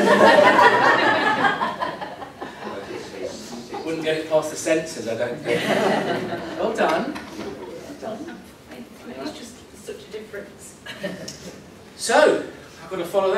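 Several women talk and laugh together.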